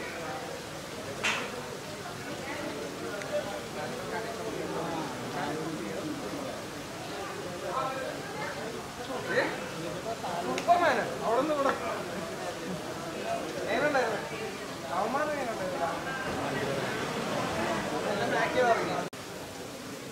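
A crowd of people chatter around, close by.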